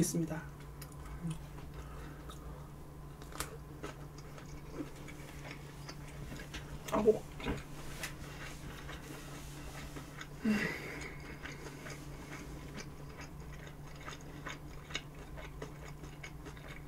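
A young woman chews and slurps food loudly and close up.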